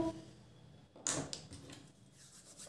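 A small plastic piece taps onto paper.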